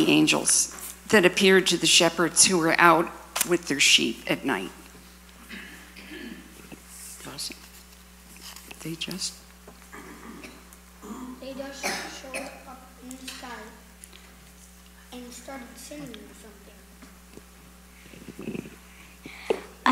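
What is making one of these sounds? A young girl speaks slowly and clearly, with pauses.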